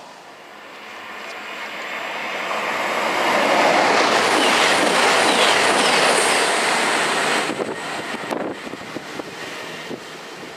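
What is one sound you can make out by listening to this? A second train roars past at speed and fades into the distance.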